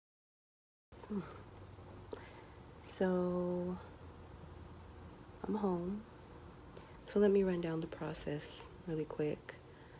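A woman speaks tiredly and slowly, close by.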